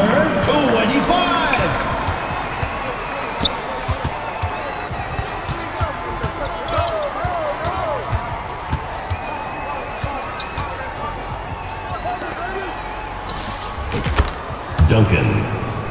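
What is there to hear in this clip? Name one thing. A basketball bounces with steady thumps on a hardwood floor.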